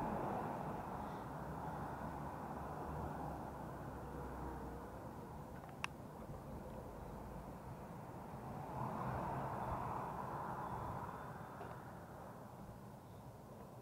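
Bicycle tyres roll over paving stones with a low rumble.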